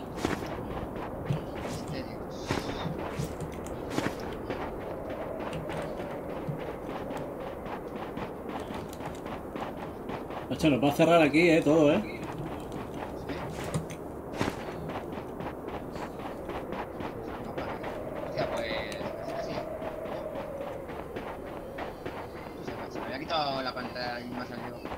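Quick footsteps crunch on snow.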